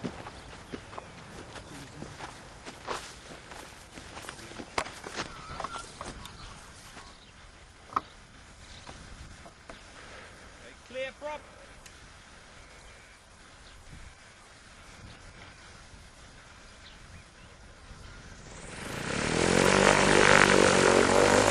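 A light aircraft engine hums in the distance and then revs up loudly.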